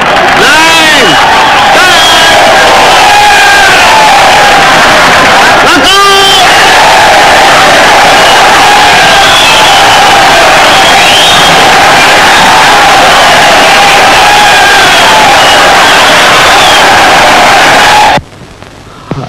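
A large crowd cheers and shouts loudly.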